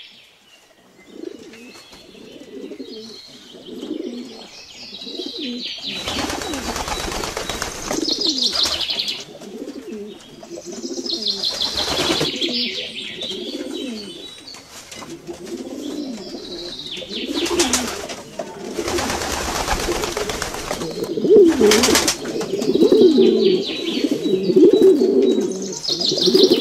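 Pigeons coo softly and steadily close by.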